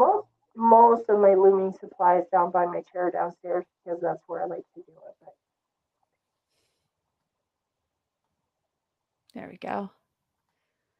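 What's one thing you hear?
A woman talks calmly over an online call.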